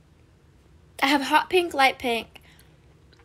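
A young woman speaks casually, close to the microphone.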